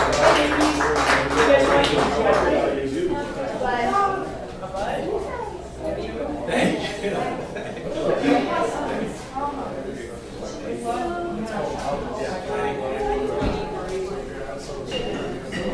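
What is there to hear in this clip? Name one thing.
A man talks nearby in a room with some echo.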